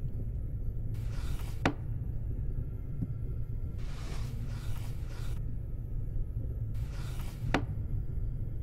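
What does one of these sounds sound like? A drawer slides shut with a soft thud.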